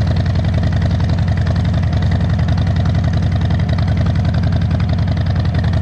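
A motorcycle engine rumbles steadily as it rides closer.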